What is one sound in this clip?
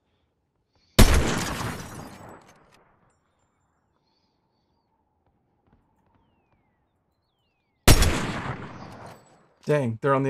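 A rifle fires two loud shots that echo away.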